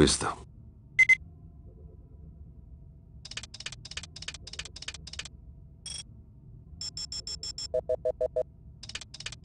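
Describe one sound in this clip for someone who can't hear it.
An electronic device gives short beeps.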